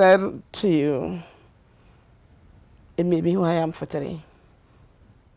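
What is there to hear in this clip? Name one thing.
An older woman speaks with animation, close by.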